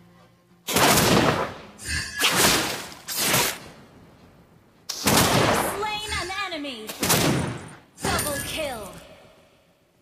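Loud whooshing blasts and hits burst out in quick succession.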